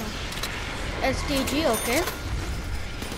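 A magical chime swirls up and down as a weapon box opens.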